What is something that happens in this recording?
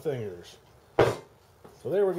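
A metal frame knocks down onto a table.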